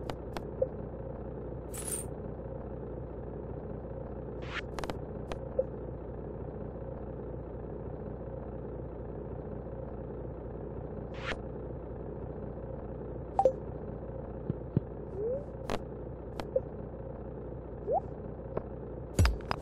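Soft game menu clicks and pops sound now and then.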